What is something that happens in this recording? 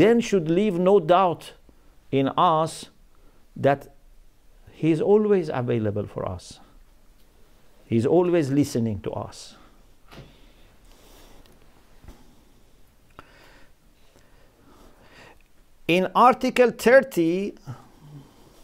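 A middle-aged man speaks slowly into a microphone, close by, with pauses.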